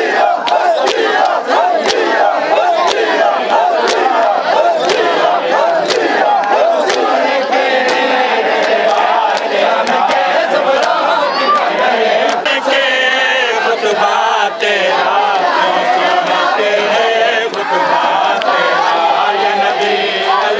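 A crowd of men chants loudly outdoors.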